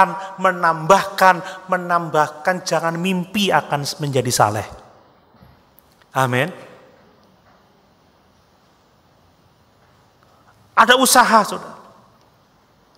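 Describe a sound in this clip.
A man preaches with passion into a microphone, in a reverberant hall.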